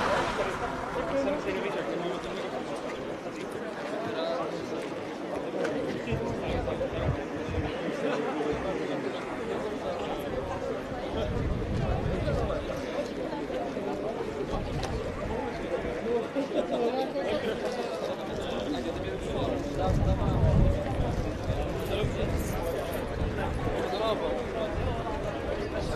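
A crowd of people chatter outdoors nearby.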